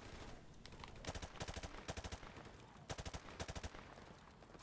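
Rapid gunfire bursts loudly in short volleys.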